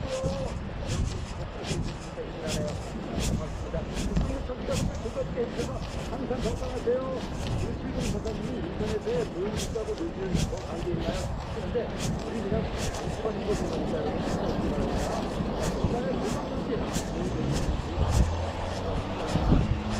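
Tyres roll steadily over asphalt.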